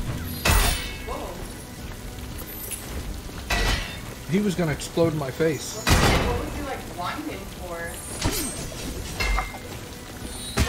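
Game sound effects whoosh and clang in bursts.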